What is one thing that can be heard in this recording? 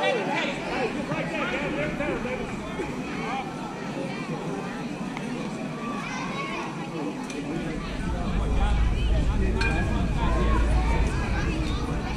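Children and adults call out and talk at a distance outdoors.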